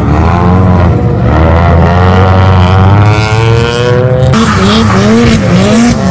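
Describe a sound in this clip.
A car engine revs hard, its pitch rising and falling.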